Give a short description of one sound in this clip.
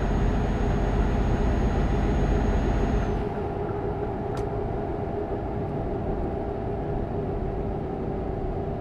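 A truck engine hums steadily at speed.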